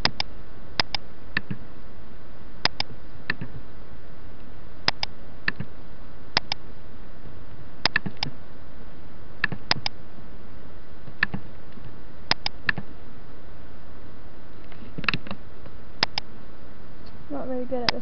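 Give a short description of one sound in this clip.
Short electronic game sounds blip again and again.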